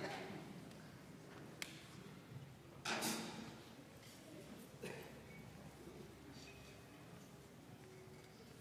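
A large concert band plays softly in a big echoing hall.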